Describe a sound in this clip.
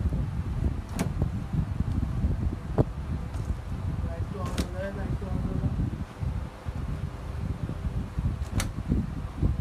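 Plastic clothes hangers click and clack as jackets are handled.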